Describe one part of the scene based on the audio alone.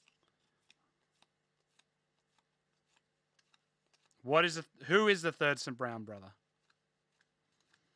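Trading cards rustle and click softly as they are shuffled by hand.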